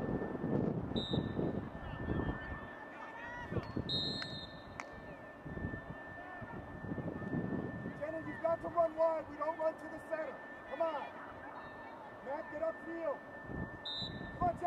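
A referee blows a sharp whistle several times.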